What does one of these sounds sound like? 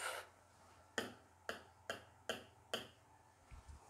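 A pen taps sharply on a board.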